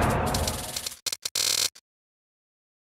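A short electronic bonus chime plays.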